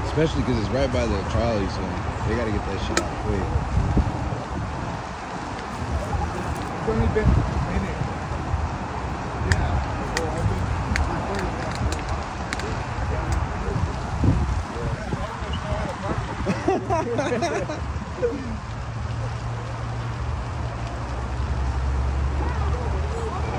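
A brush fire crackles in the distance.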